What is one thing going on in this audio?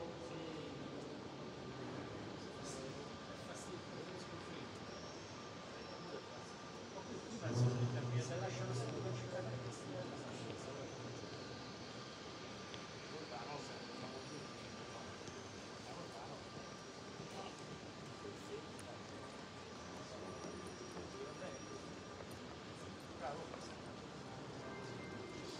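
A crowd of visitors murmurs and talks in a large echoing hall.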